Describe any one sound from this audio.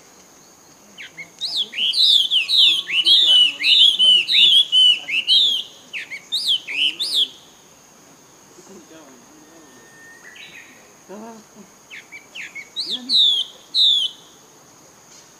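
Young monkeys squeal in quick, high chirps close by.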